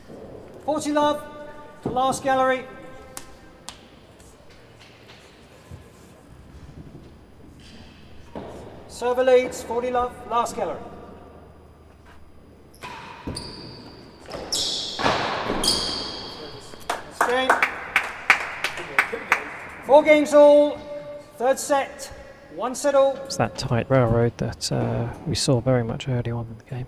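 Rackets strike a ball back and forth, echoing in a large hall.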